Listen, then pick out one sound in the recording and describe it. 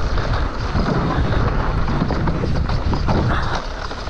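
Bicycle tyres rattle over wooden planks.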